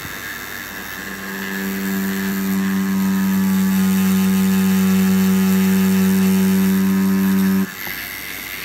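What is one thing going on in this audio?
A tattoo machine buzzes with a steady drone.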